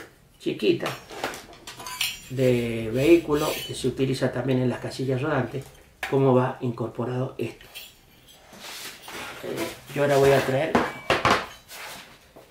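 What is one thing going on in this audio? An elderly man talks calmly and close by.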